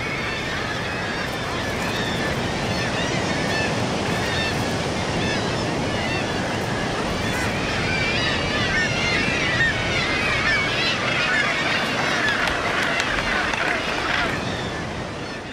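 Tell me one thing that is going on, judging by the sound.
A large colony of seabirds calls and squawks noisily.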